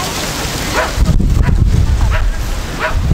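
Wind gusts into the microphone outdoors.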